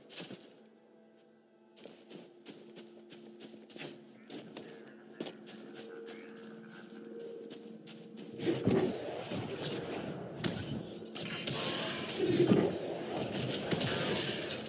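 Footsteps crunch on snow and rock.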